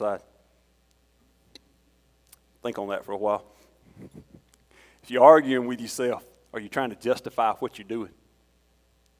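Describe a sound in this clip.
A man speaks calmly into a microphone in an echoing room, with pauses between phrases.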